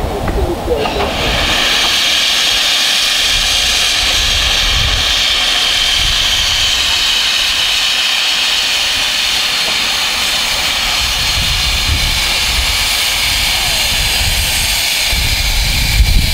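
Steam hisses loudly from the cylinder drain cocks of a steam locomotive.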